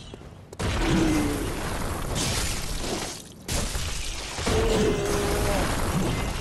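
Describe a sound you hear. Heavy blows thud and crash.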